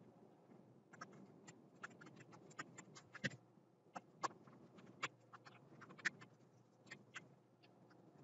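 A stylus taps and scratches faintly on a tablet.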